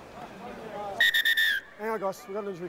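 A referee's whistle blows a short, sharp blast outdoors.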